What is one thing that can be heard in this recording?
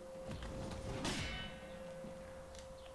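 Steel blades clash with a ringing clang.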